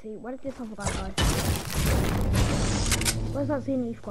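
A pickaxe strikes a wall with loud thwacks.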